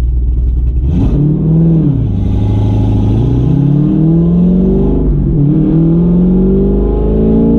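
A car engine revs hard and rises in pitch through the gears.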